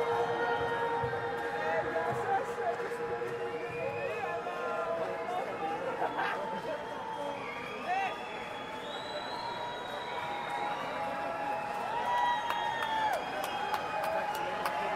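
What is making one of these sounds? A man speaks through a microphone over loudspeakers in a large echoing hall.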